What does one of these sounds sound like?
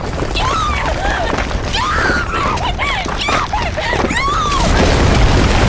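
A young woman screams and sobs in anguish close by.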